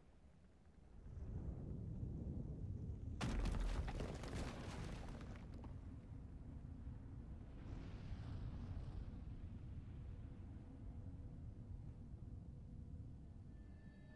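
Flames roar and crackle with a deep rumble.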